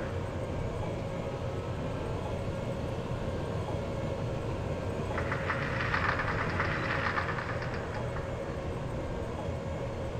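A tank engine rumbles steadily as tracks roll over dirt.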